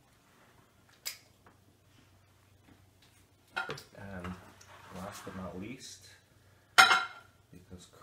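A spoon clinks against a dish.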